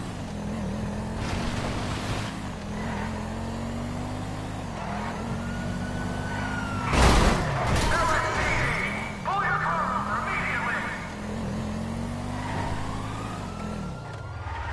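A car engine revs hard and shifts up through gears.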